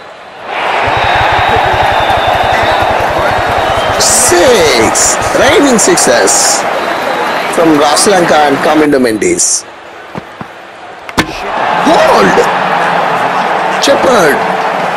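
A large crowd cheers and murmurs in a stadium.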